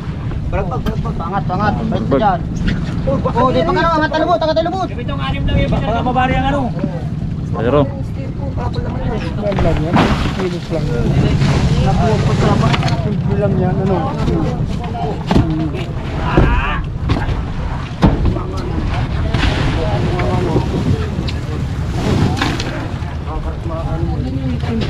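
Men talk and call out to one another nearby, outdoors.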